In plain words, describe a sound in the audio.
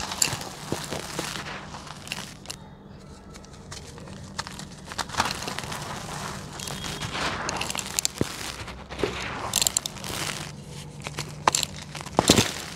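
Hands crumble dry cement into a pot, with gritty crunching and snapping.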